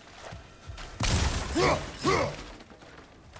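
Wooden planks smash and splinter apart.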